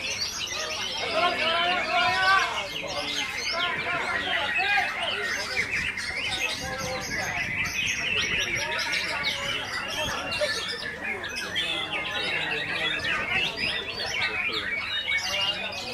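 Many songbirds chirp and trill loudly and without pause.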